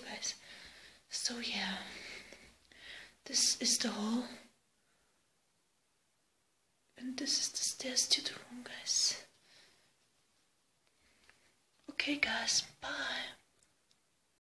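A young woman talks casually, close to a phone microphone.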